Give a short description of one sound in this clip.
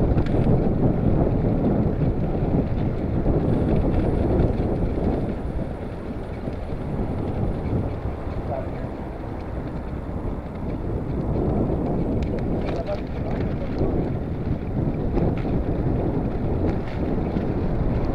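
Wind rushes past steadily outdoors.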